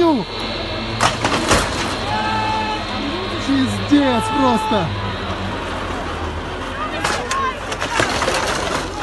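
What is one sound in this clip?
Metal chairlift seats bang and clatter loudly.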